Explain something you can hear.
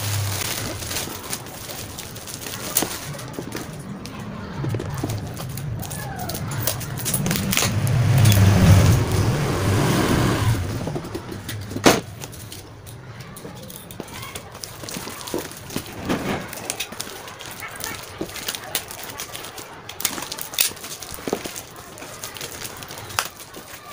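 Hands rub and tap a cardboard box.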